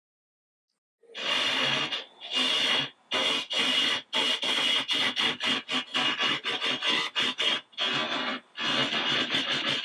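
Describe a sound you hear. A chisel scrapes and cuts spinning wood in rough, repeated bursts.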